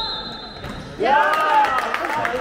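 Young handball players shout in a large echoing sports hall.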